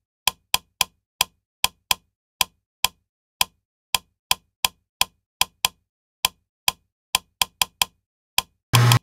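A wall light switch clicks on and off.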